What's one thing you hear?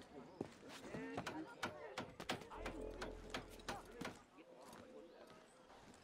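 Hands and feet knock against wooden planks while climbing.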